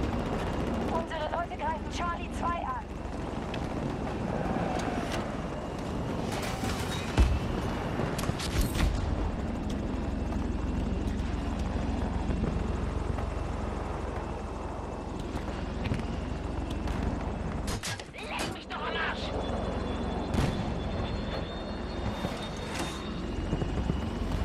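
A helicopter's rotor thumps and its engine roars steadily.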